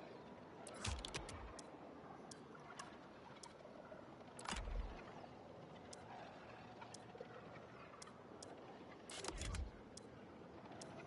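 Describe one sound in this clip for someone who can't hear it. Short interface clicks tick as options are switched.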